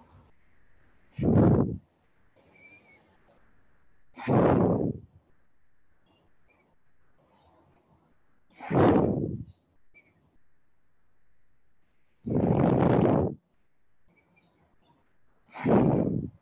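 A woman exhales hard with each push-up.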